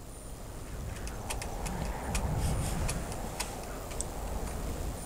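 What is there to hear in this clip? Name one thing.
Footsteps clank across a metal roof.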